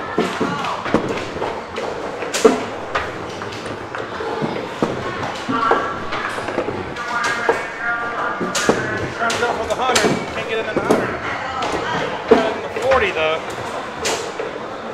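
Arcade machines play electronic jingles and chimes.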